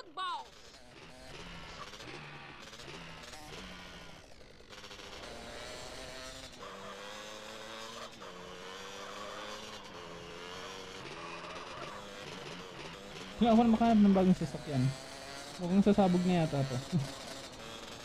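A quad bike engine hums and revs.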